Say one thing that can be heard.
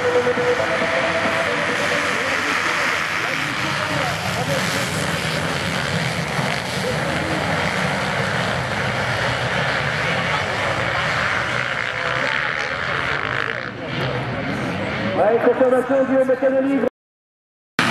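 Motorcycles roar away and race past.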